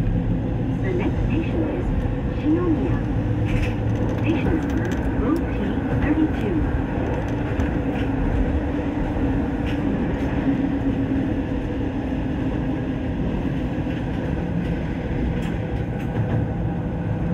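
A train's motor hums and whines.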